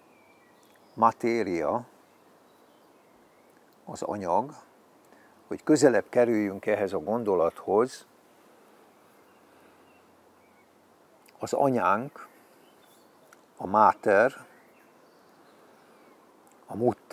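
An elderly man speaks calmly in short phrases close by, with pauses between them.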